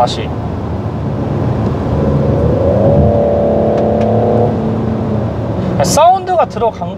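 A car engine hums steadily and rises in pitch as it speeds up.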